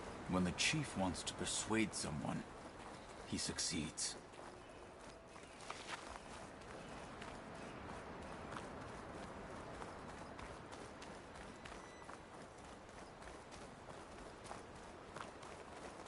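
Wind blows steadily.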